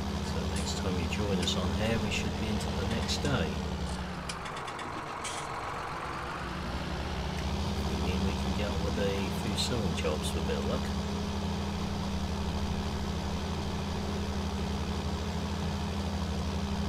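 A tractor engine drones steadily, dipping briefly before picking up again.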